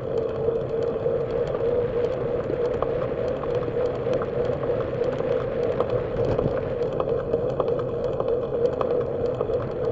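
Wind rushes loudly over a microphone.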